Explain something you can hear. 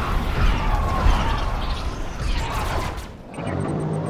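Energy weapons blast and explosions rumble in a battle.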